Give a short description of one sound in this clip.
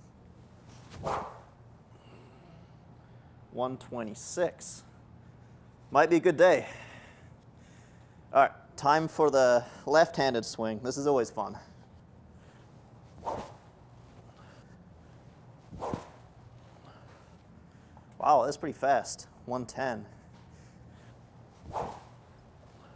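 A golf club strikes a ball with a sharp smack.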